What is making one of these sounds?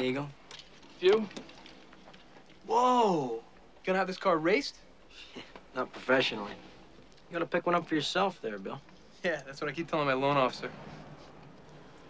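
A second young man answers in a low, tense voice.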